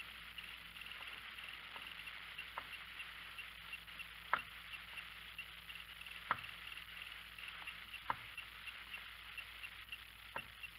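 A paintbrush taps lightly on paper.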